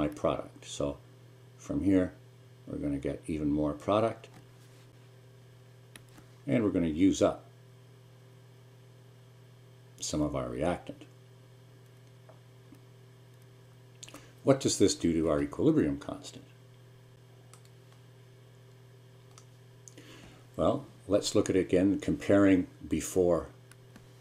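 A middle-aged man speaks calmly into a close microphone, in bursts with pauses.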